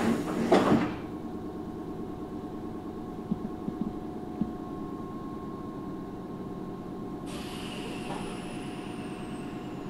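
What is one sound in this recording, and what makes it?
A train's motor hums steadily while standing still.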